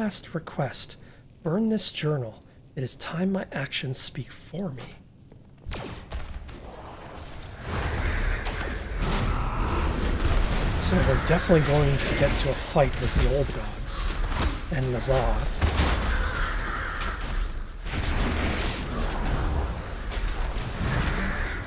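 A man talks calmly and close into a headset microphone.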